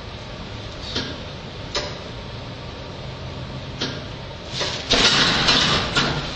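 Fists thud against a heavy punching bag.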